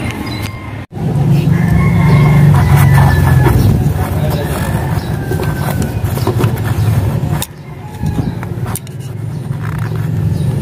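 A screwdriver scrapes inside a metal tube.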